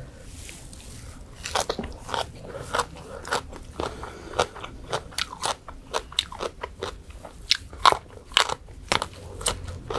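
A young woman chews crunchy food loudly and wetly close to a microphone.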